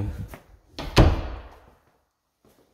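A door bumps open with a short echo.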